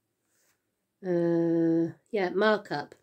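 A middle-aged woman sings a long, steady note close by.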